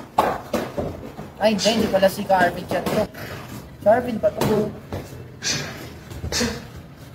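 Boxing gloves thud against each other in sparring.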